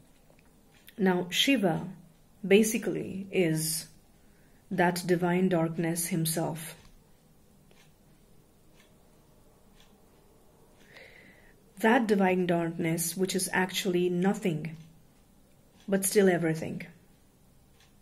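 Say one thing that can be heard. A young woman speaks calmly and close up, in short bursts with pauses.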